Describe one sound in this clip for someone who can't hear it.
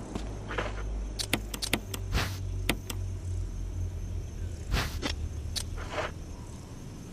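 A menu clicks and beeps with short sharp tones.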